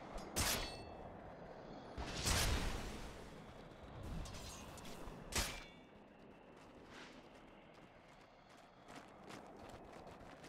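Video game sound effects whoosh in short bursts.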